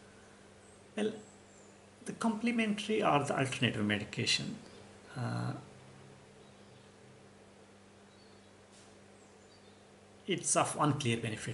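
A middle-aged man speaks calmly and haltingly, close to a microphone, with long pauses.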